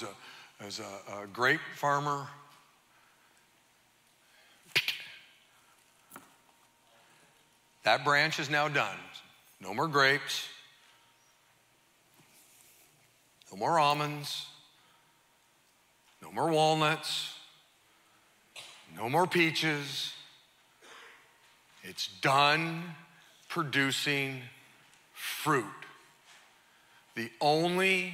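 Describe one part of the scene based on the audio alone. A middle-aged man speaks with animation through a microphone in a reverberant hall, pausing often.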